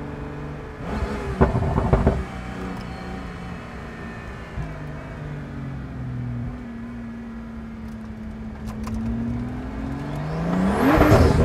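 A sports car engine hums steadily, then revs up sharply.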